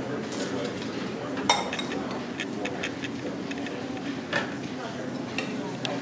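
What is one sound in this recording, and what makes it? Tongs clink against a salad bowl.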